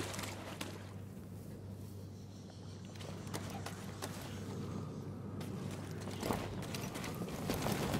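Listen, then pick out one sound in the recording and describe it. Footsteps run over soft grass.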